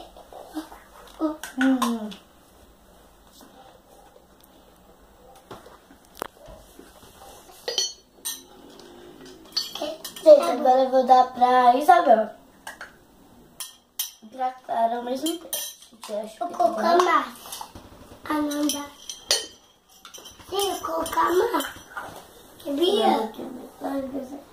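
A young girl talks playfully and animatedly nearby.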